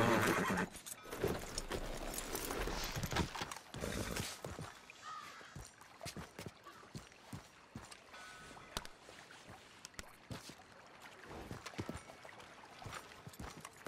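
Footsteps scrape and crunch over rock.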